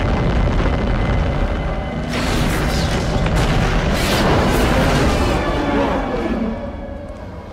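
A helicopter roars overhead with loud rotor noise.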